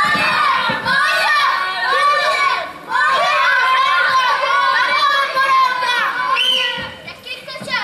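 Several women and children sing together through loudspeakers.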